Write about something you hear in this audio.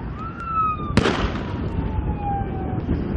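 A loud blast goes off nearby and echoes away.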